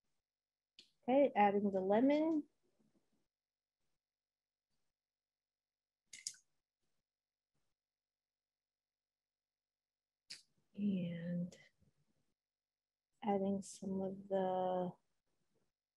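A woman talks calmly over an online call, in short bursts.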